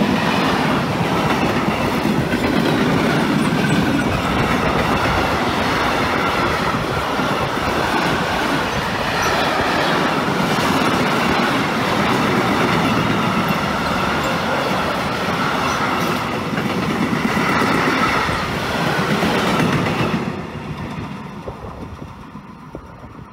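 A long freight train rumbles and clatters past close by, then fades away.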